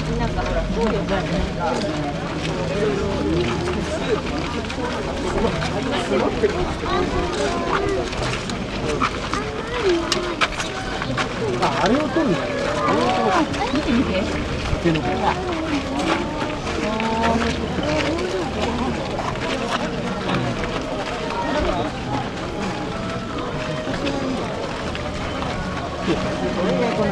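A large crowd chatters and shouts loudly all around.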